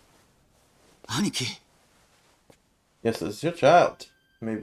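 A man speaks in a low voice.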